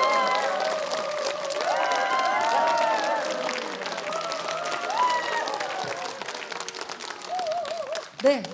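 A large audience claps and cheers in an echoing hall.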